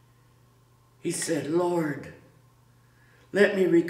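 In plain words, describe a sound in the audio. A middle-aged man reads aloud calmly, close by.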